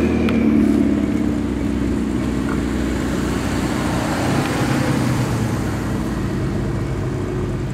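A large car engine rumbles deeply as it pulls away.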